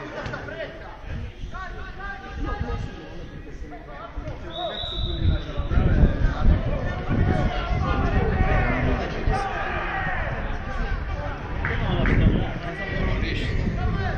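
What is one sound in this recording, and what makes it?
Football players shout to each other across an open pitch.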